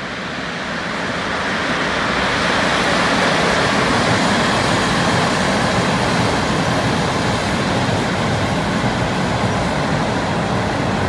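Wheels clatter over rail joints.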